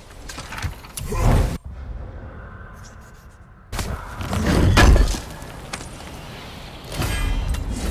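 A heavy chest lid creaks and thuds open.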